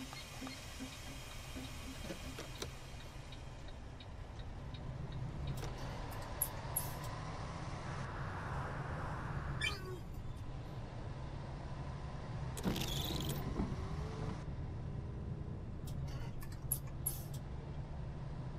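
A bus engine hums low and steady as the bus drives along.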